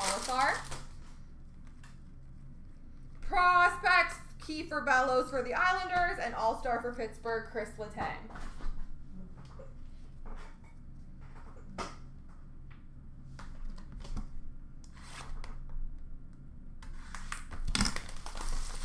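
Plastic-wrapped card packs rustle and clatter as they are handled.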